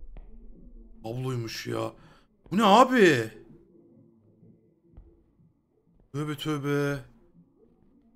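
A man speaks with animation into a headset microphone, in short bursts.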